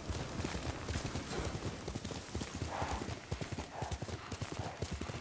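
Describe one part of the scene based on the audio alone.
Horse hooves gallop quickly over soft ground.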